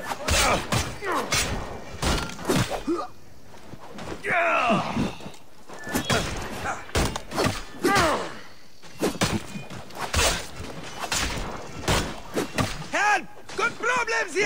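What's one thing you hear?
Metal weapons clash and strike in quick, repeated blows.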